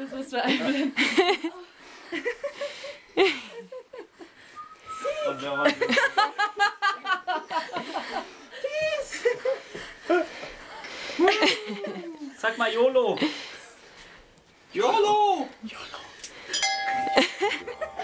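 An elderly woman talks playfully close by.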